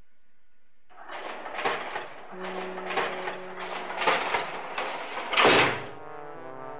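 A heavy metal gate rattles and clanks as it slides open.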